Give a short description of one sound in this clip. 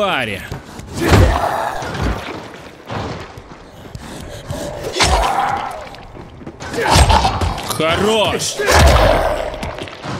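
Heavy blows thud and squelch into flesh.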